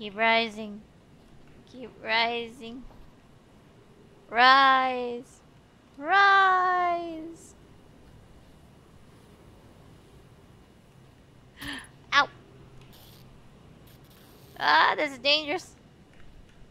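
A young woman speaks in short, high, animated bursts close to a microphone.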